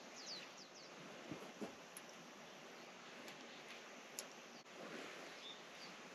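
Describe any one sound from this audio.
Tent poles click and knock.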